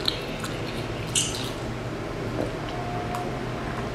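A young woman sips a drink with a soft slurp.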